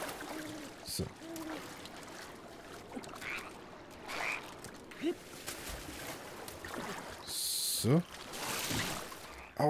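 Water splashes and swishes under a gliding rider.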